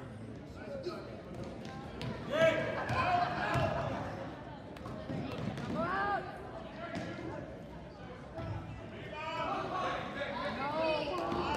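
Sneakers squeak sharply on a hard gym floor.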